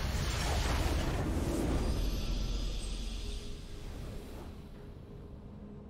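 A triumphant fanfare swells and slowly fades.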